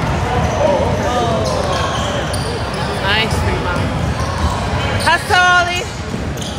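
A basketball bounces on the court floor.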